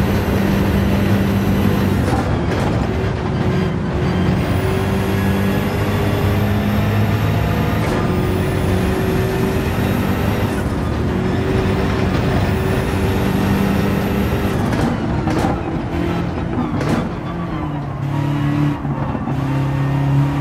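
Tyres rumble and hiss over the road.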